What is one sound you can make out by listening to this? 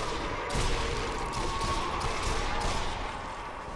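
A pistol fires several sharp shots in quick succession.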